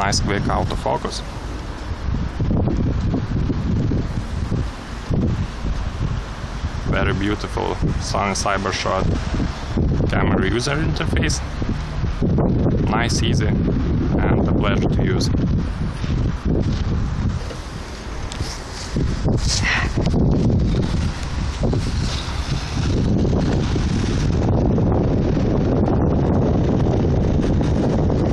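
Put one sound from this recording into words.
Wind gusts outdoors and rumbles against the microphone.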